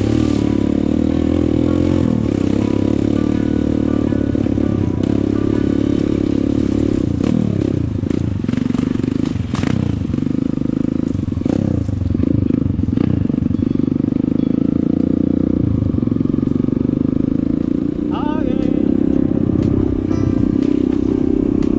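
A motorcycle engine hums steadily and revs up and down.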